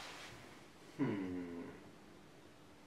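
A man hums with pleasure while eating.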